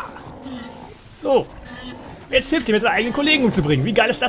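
A large beast growls.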